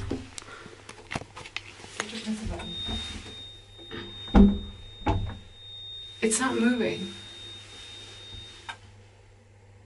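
A woman speaks close by in a hushed, tense voice.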